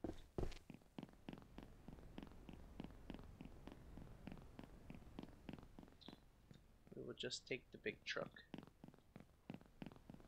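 Footsteps tread quickly over grass.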